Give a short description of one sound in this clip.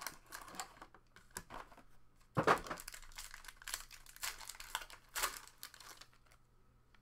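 Plastic wrapping crinkles and tears.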